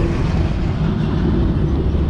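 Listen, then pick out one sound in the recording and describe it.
A heavy cargo truck approaches on the road.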